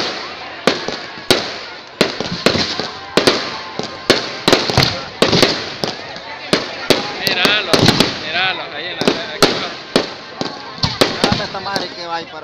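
Fireworks fizz and crackle.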